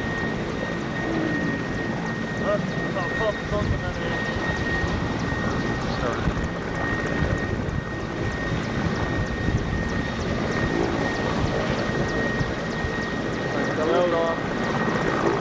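A twin-turbine transport helicopter runs on the ground with its rotor thumping.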